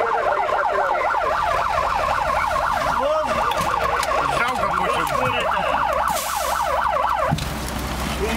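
A siren wails steadily up and down close by.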